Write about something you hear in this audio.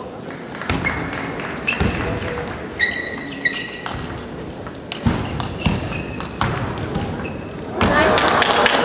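A table tennis ball clicks back and forth between paddles in a rally.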